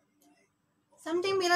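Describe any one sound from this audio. A young woman speaks into a microphone close by.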